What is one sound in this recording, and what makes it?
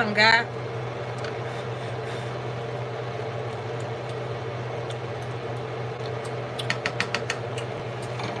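A spoon scrapes and taps against a cooking pot.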